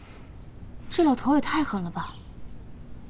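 A young woman speaks with surprise nearby.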